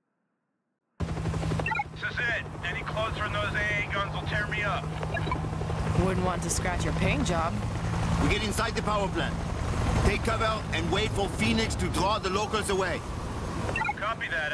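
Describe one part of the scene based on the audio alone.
A helicopter's rotor thumps and whirs close by.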